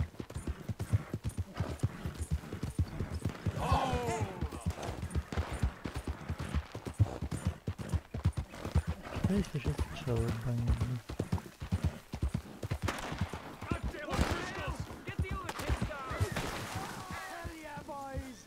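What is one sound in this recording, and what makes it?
Horse hooves thud rapidly at a gallop on a dirt track.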